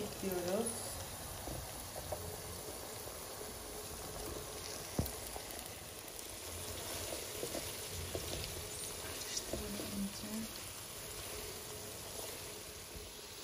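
Food sizzles gently in a hot pan.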